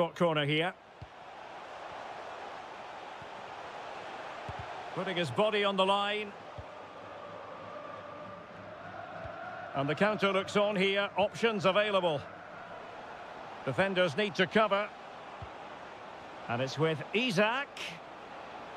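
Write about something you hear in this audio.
A stadium crowd murmurs and cheers steadily.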